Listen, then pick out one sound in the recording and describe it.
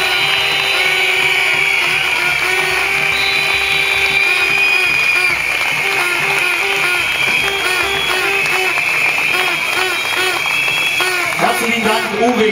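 A large outdoor crowd cheers and claps.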